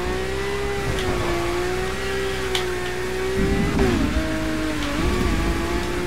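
A car engine roars steadily at high revs.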